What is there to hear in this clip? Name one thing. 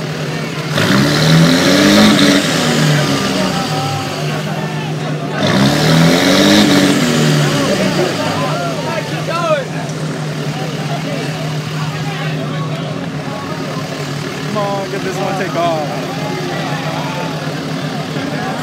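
Truck engines idle with a steady rumble.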